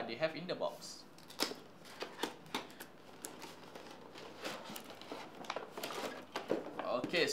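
A cardboard box scrapes and taps as a man opens it.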